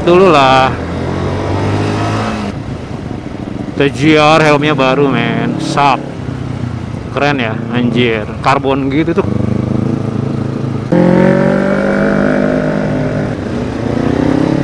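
A motorcycle engine revs up and down close by as the bike rides along.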